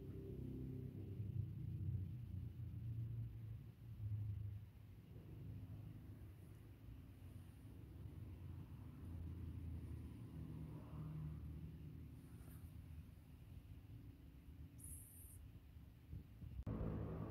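A cat purrs loudly and steadily close by.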